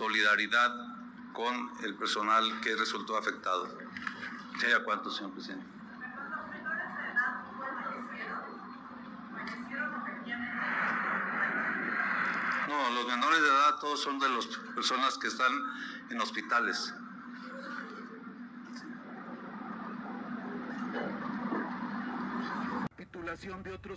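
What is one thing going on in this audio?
A middle-aged man speaks steadily into microphones, heard through a loudspeaker outdoors.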